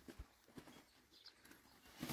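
A bag rustles and thumps as it is set down on the ground.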